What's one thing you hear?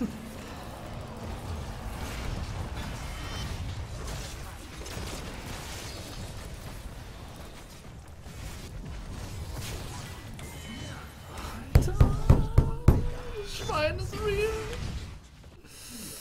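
Game combat sounds clash and thud, with loud blasts.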